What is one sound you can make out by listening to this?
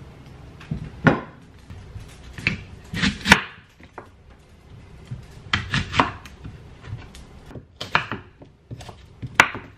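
A knife chops through an apple on a wooden cutting board.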